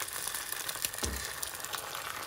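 An eggshell cracks open.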